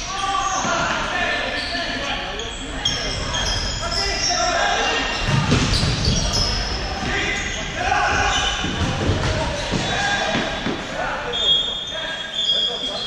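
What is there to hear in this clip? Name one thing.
Players shout and call out across a large echoing hall.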